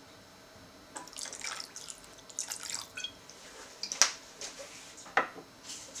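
Liquid drips and splashes into a pan.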